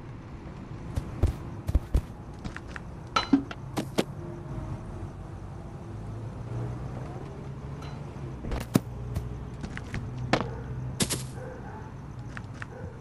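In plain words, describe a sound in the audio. Footsteps thud and crunch on grass and pavement.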